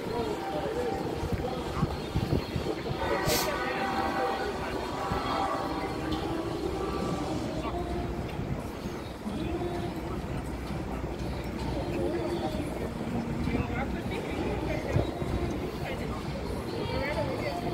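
A crowd chatters and murmurs nearby.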